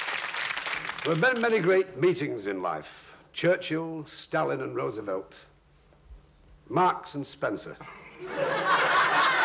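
A middle-aged man speaks slowly and gravely.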